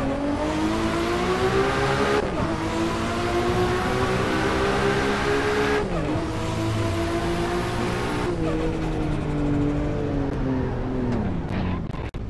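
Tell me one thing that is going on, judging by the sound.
A car engine revs high and climbs through the gears, with pitch dropping at each gear change.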